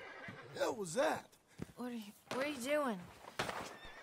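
A woman asks anxious questions up close.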